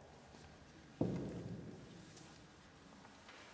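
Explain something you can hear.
A choir begins to sing in a large echoing hall.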